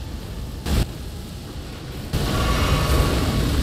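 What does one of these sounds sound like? Fire bursts and roars loudly.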